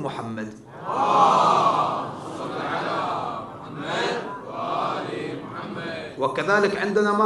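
A man speaks with feeling into a microphone, heard through a loudspeaker in a reverberant hall.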